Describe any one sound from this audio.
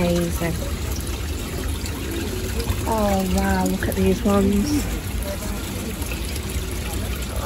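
Water splashes steadily into a pond.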